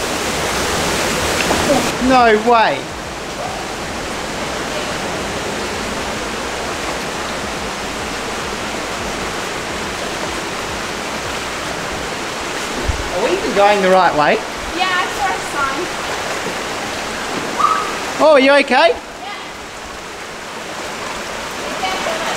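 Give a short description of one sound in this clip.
Water rushes and splashes steadily over rocks outdoors.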